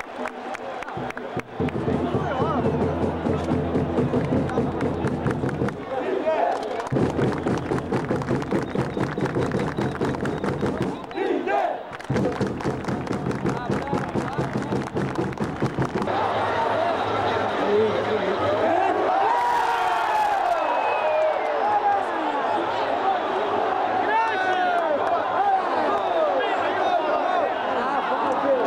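A large stadium crowd chants and roars loudly.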